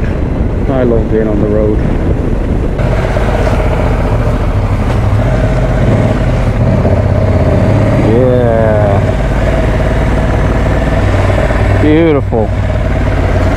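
A motorcycle engine revs up briefly between gear changes.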